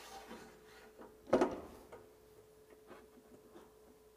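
A metal knob clicks as it is turned.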